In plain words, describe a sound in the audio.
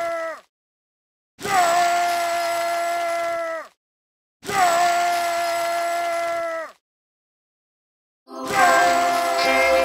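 Short game emote sounds play as sustained, bright musical tones, separated by silences.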